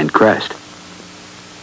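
A middle-aged man speaks briefly up close.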